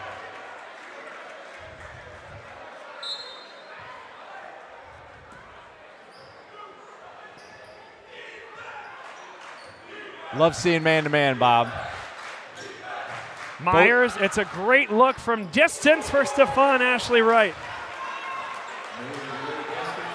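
A large crowd murmurs in an echoing gym.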